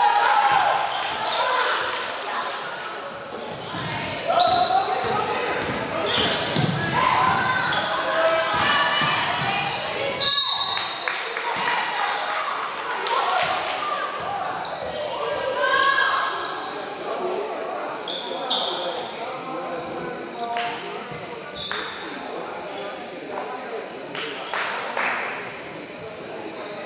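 Young women shout to each other in a large echoing gym.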